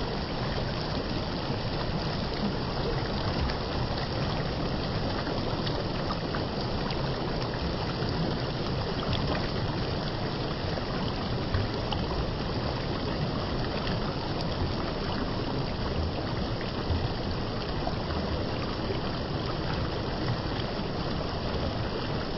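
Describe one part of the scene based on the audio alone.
Shallow water rushes and splashes steadily over rocks.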